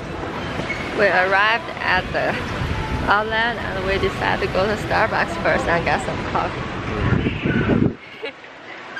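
A young woman talks with animation close to the microphone, outdoors.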